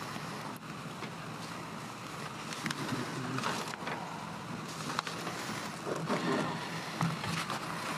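Paper sheets rustle.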